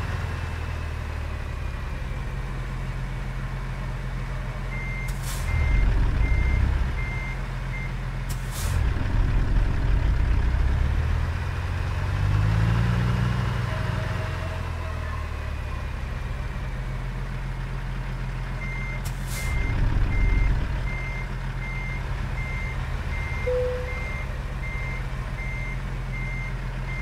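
A truck engine idles and rumbles steadily, revving up now and then.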